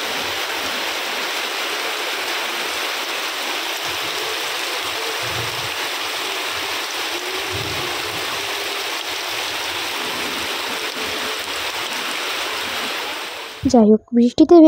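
Bare feet splash through shallow running water.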